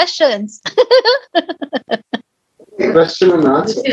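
A middle-aged woman laughs over an online call.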